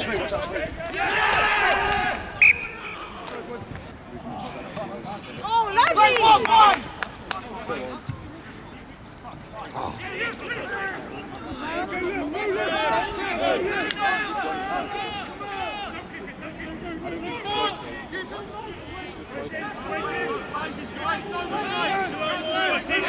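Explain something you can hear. Men shout and call to each other outdoors on an open field.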